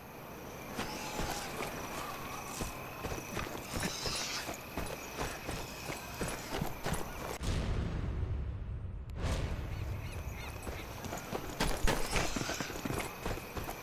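Footsteps crunch on gravel and dirt.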